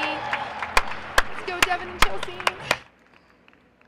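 A woman claps her hands.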